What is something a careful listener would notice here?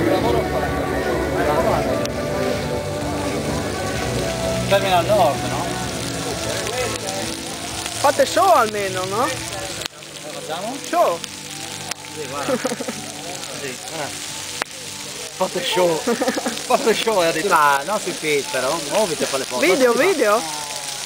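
Several men talk and laugh close by.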